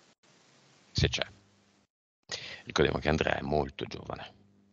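A man speaks calmly into a headset microphone, heard over an online call.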